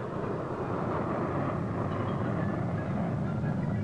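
An aircraft engine roars in the distance.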